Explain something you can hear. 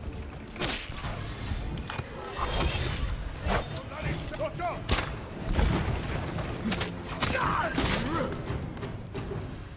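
A man grunts and shouts.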